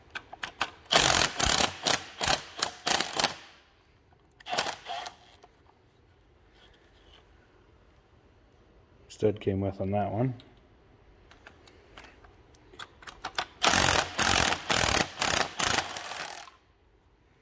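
A ratchet wrench clicks in quick bursts as a bolt is turned.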